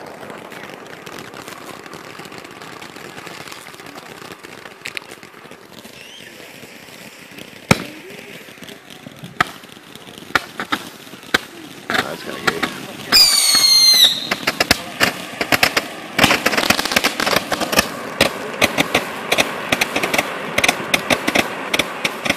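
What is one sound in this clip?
A firework fountain hisses and crackles with rapid pops.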